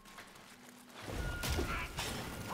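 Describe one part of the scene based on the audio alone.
A blade whooshes through the air in a fight.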